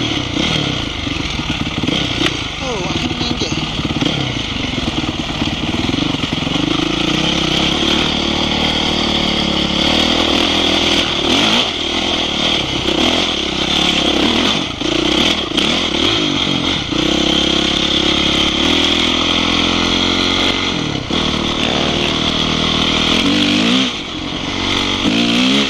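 A dirt bike engine revs hard and shifts through gears.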